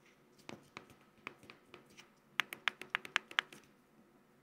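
Plastic knobs and buttons click sharply as they are turned and pressed.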